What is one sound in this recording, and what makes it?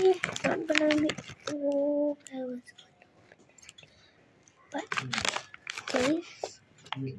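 A snack bag crinkles.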